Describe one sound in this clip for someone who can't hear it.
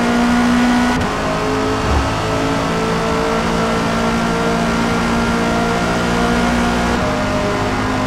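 A racing car engine's pitch drops briefly as it shifts up a gear.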